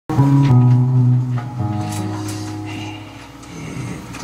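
An acoustic guitar strums a chord that rings out and fades.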